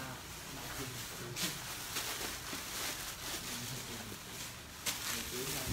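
Plastic wrapping rustles and crinkles as bundles of cloth are handled.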